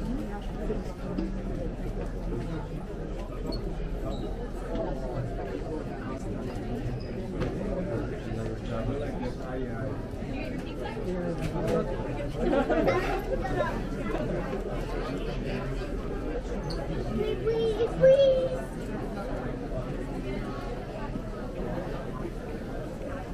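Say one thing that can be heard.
A crowd of people murmurs and chatters all around in a large echoing hall.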